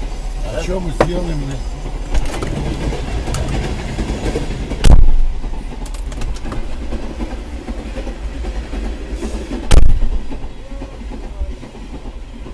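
Freight wagons' wheels clack over rail joints.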